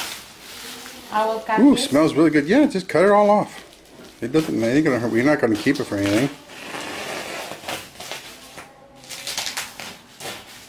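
Plastic bubble wrap crinkles and rustles as it is handled.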